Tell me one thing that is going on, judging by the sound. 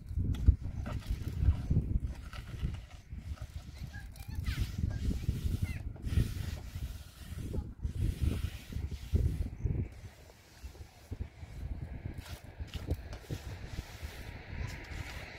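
A trowel scrapes mortar along a concrete block wall.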